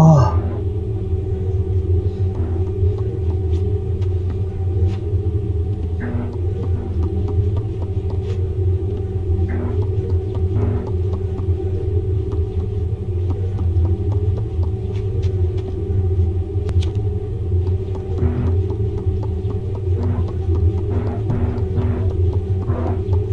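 Small footsteps creak softly on a wooden floor.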